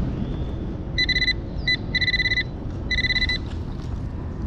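A metal detector beeps in short bursts.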